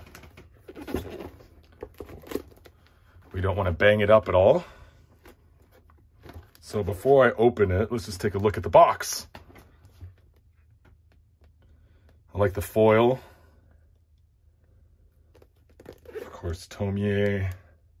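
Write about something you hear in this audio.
A cardboard box is handled, with soft scrapes and taps.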